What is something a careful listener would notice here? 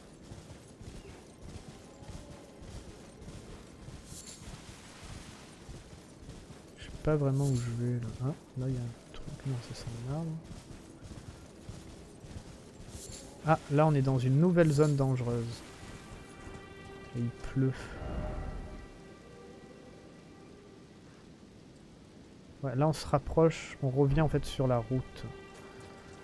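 A horse gallops over grass.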